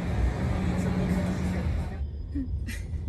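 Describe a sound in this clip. Busy city traffic and crowd noise roar outdoors.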